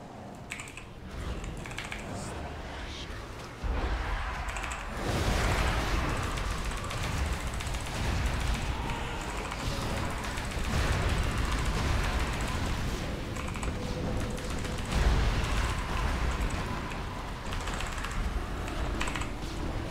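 Spell blasts and clashes of a game battle crackle and boom.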